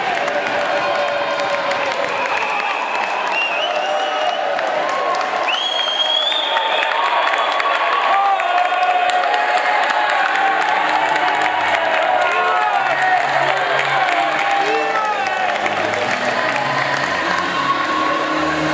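A crowd cheers and shouts in a large echoing arena.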